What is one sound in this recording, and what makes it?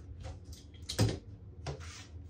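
A wooden frame knocks against a table.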